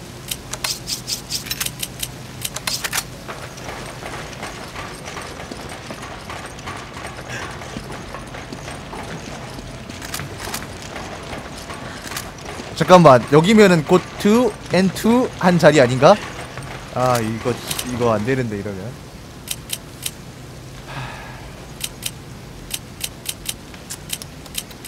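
A game menu cursor ticks in quick, sharp clicks.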